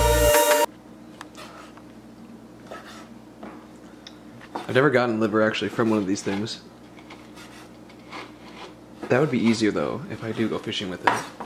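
A knife chops on a wooden cutting board.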